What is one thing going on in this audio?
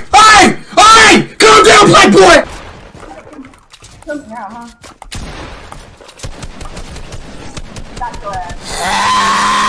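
A young man shouts loudly and excitedly into a microphone.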